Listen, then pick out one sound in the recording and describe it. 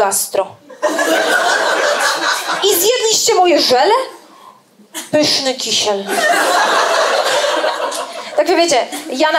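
An audience laughs loudly.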